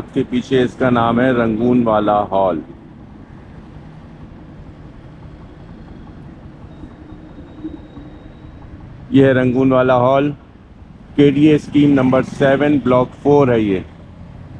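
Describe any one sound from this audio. Cars and motorcycles pass on a street.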